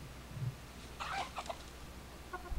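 A chicken clucks softly nearby.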